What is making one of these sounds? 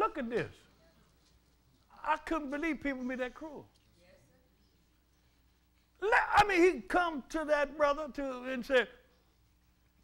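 An elderly man preaches loudly and with fervour into a microphone, with pauses between phrases.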